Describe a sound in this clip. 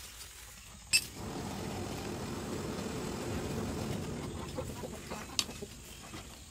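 A forge fire roars steadily.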